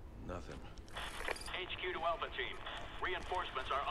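A man speaks over a radio.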